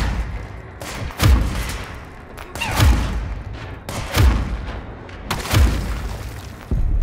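Heavy blasts boom and crash with loud rumbling.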